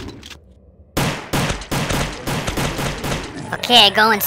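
A gun fires a quick series of shots.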